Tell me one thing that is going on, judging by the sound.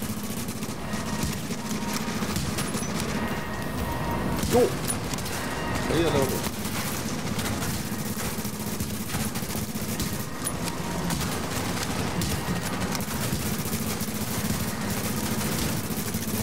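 A flamethrower roars in steady, crackling bursts.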